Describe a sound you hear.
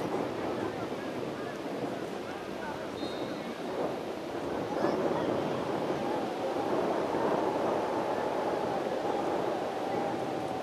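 Players and onlookers call out from a distance across an open field outdoors.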